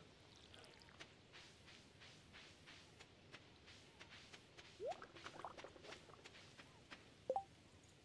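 Footsteps tap softly on dirt.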